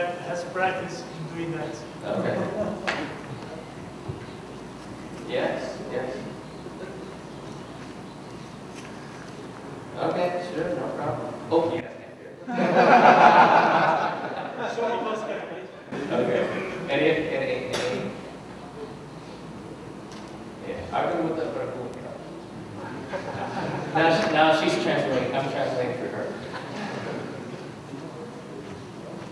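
A man speaks into a microphone in a large hall, pausing often.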